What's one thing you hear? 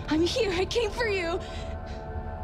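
A young woman cries out in distress, close by.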